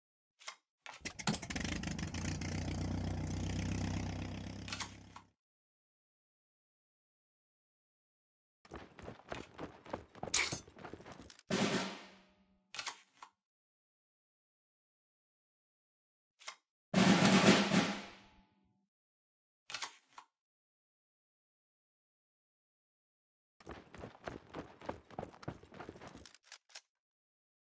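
Cards slide and snap down onto a table.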